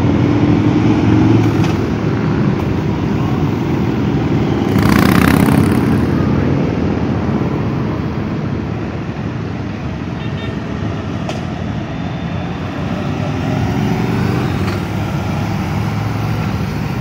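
A long procession of cruiser motorcycles rumbles past close by.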